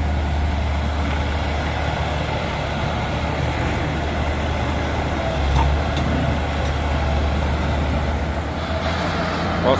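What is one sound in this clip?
A heavy excavator engine rumbles steadily nearby.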